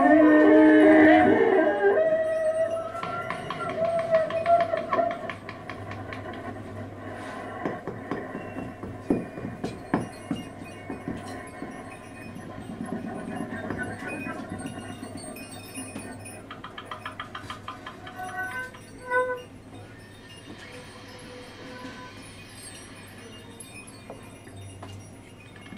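A clarinet plays wandering, broken phrases.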